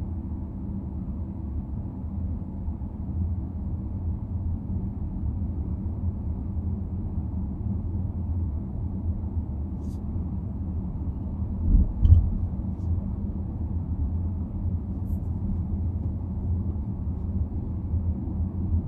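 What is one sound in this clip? A car's engine hums steadily from inside the car as it drives along a road.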